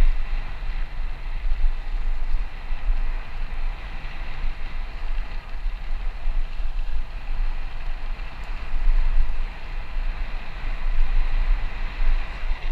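Tyres crunch steadily over a dirt path.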